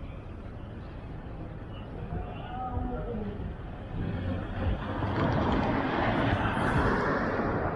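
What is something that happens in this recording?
A car drives slowly past at close range.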